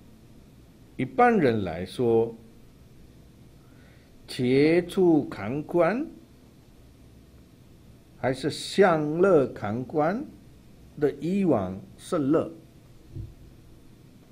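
An elderly man speaks slowly and calmly into a microphone, with long pauses.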